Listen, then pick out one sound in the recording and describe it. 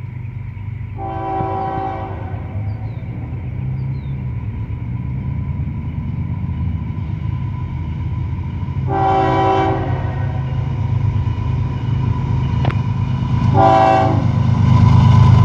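A train horn blows in long blasts, far off and drawing closer.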